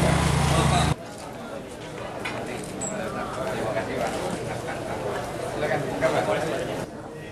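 A crowd of men chatter outdoors.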